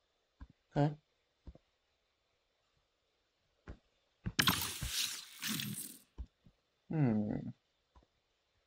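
A young man speaks close to a microphone in short bursts, with animation.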